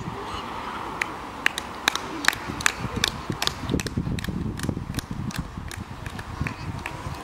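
A small crowd claps hands outdoors.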